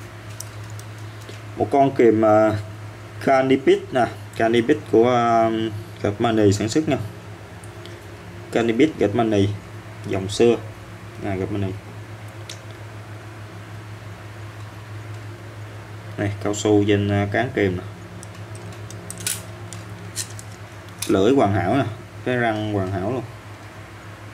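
Metal pliers click softly as their jaws are opened and closed.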